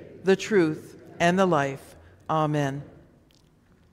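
A middle-aged woman speaks calmly through a microphone in an echoing hall.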